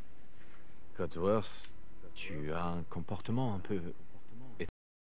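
A man speaks calmly up close.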